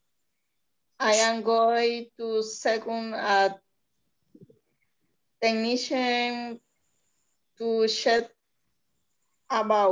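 A woman speaks slowly and clearly through an online call, with short pauses.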